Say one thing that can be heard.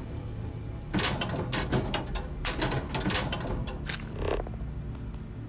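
A metal locker door clanks and rattles open.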